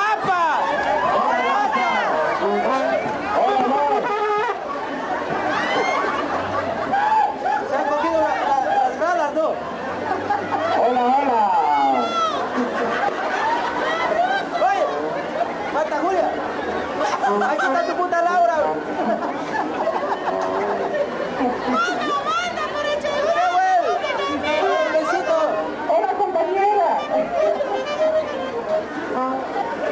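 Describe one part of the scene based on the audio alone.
A large crowd chatters and calls out loudly outdoors.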